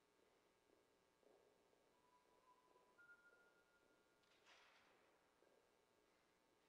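Footsteps echo faintly across a large, reverberant hall.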